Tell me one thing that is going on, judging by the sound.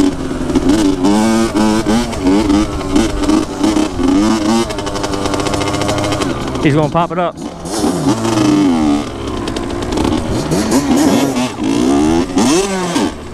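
A quad bike engine revs and roars nearby.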